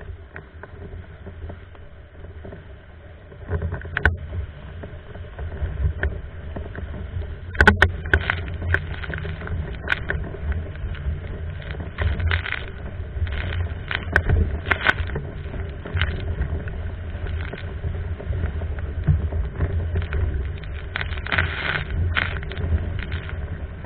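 Wind buffets a nearby microphone with a rough, low rumble.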